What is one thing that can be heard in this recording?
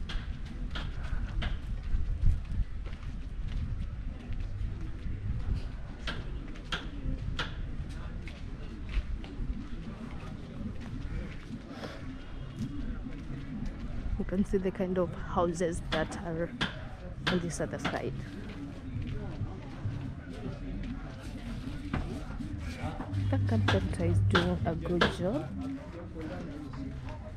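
Footsteps crunch steadily on a dirt path outdoors.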